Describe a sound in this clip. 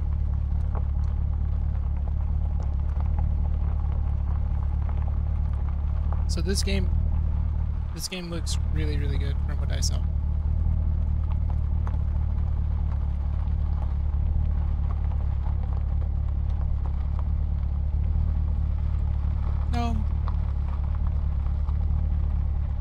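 A car engine hums steadily at low pitch.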